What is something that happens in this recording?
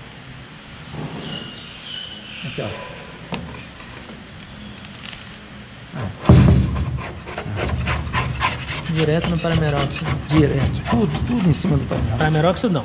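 A scraper scrapes bubbled paint off a metal panel.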